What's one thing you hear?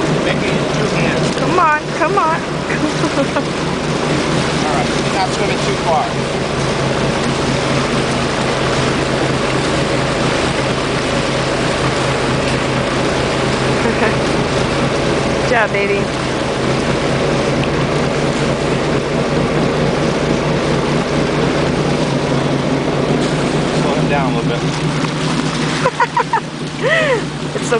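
Water splashes and churns as large birds scramble close by.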